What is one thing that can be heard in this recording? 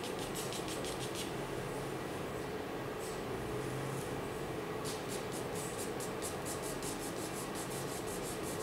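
A pencil scratches back and forth on paper in quick, rhythmic strokes.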